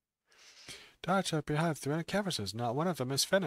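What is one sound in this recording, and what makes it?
A man reads out a story calmly, close to a microphone.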